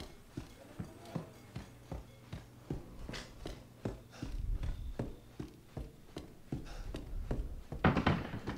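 Footsteps creak slowly across a wooden floor.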